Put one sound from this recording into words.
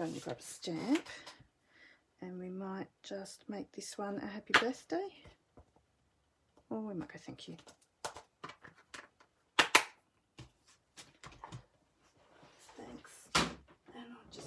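A plastic case rattles and clacks as hands handle it.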